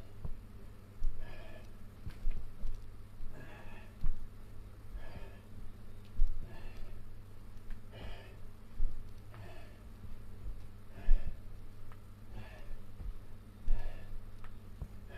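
Bare feet thump softly on thick bedding.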